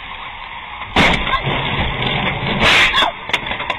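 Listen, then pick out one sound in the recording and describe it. A car crashes with a loud, crunching impact.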